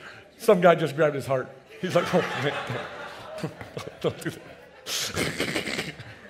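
An older man laughs heartily into a microphone.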